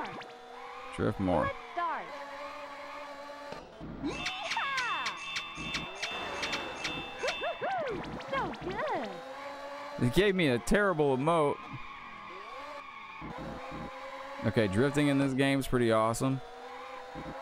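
Tyres screech as a car drifts through bends.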